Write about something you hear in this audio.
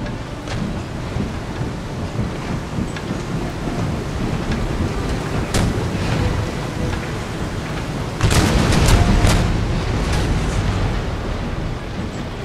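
Waves wash against a sailing ship's hull as it cuts through the sea.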